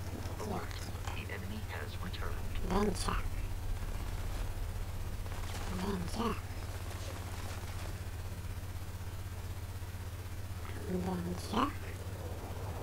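A young man speaks casually into a close microphone, in short bursts.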